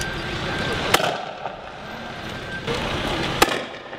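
A gas launcher fires with sharp, loud bangs nearby.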